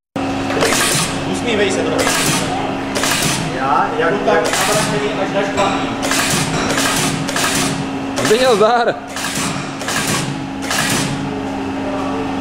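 An industrial machine hums steadily.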